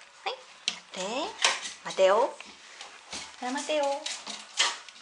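A small dog whimpers in short, high rising cries.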